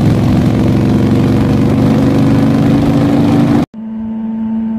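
A motorcycle engine roars at high speed on a road.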